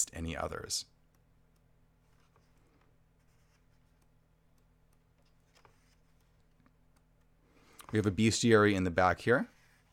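Book pages rustle softly as they are turned.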